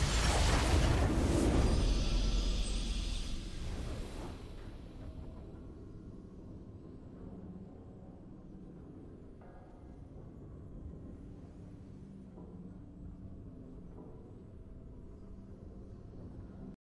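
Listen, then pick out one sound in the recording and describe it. A triumphant victory fanfare swells and fades into soft music.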